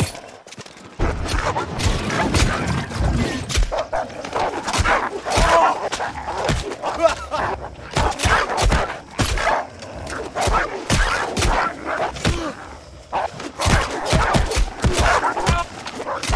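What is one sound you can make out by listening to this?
Weapons clash and thud in a fast video game battle.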